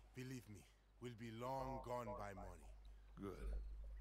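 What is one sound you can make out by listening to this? An older man answers briefly in a low, gruff voice.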